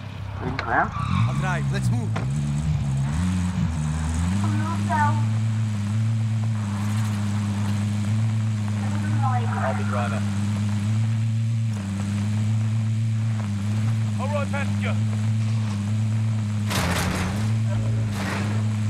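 A vehicle engine starts, revs up and then drones steadily.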